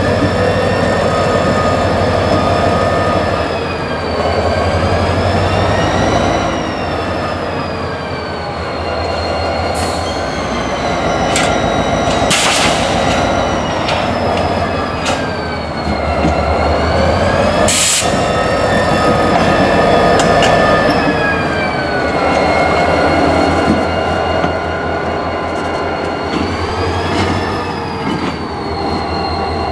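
A diesel locomotive engine rumbles and drones loudly close by.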